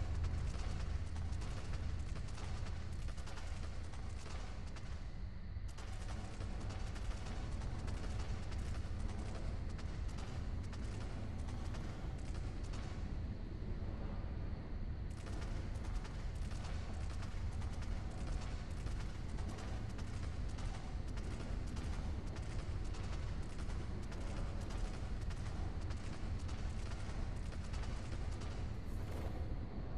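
Footsteps of a ridden beast thud on rock.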